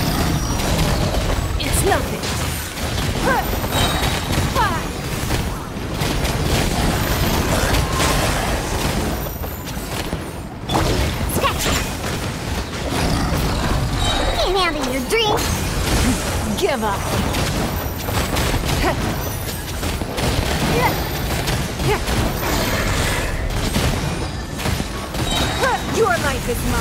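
Game combat effects whoosh, crackle and explode in quick bursts.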